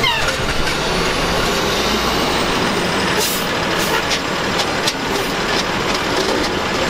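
A garbage truck engine rumbles and idles nearby.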